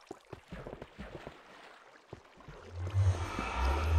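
A wooden chest creaks and thuds shut.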